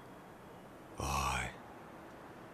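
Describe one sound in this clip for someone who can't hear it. A young man speaks quietly up close.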